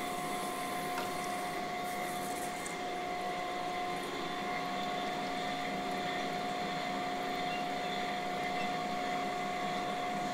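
Metal parts click as a clamp is fitted.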